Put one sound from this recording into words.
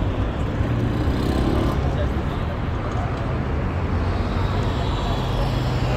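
A motorcycle engine rides past close by.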